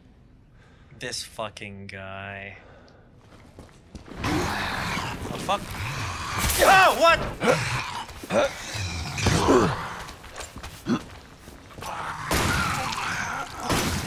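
A monstrous creature shrieks and snarls close by.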